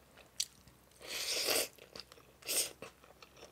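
A young woman slurps noodles loudly, close up.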